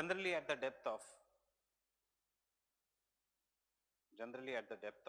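A man speaks calmly into a microphone, lecturing.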